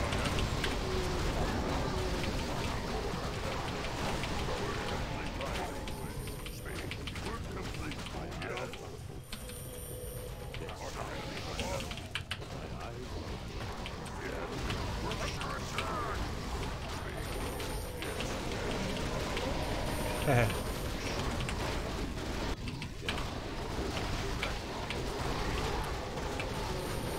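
Battle sounds of clashing weapons and spell blasts ring out from a game.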